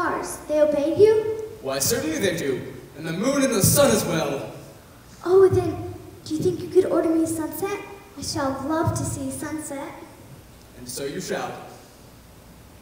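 A young boy speaks in reply.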